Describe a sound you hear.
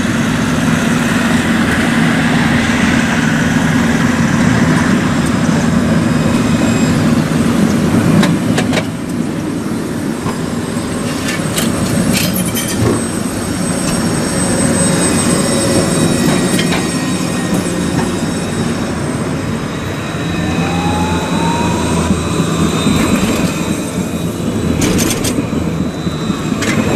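A tram hums and rumbles as it rolls past close by on its rails.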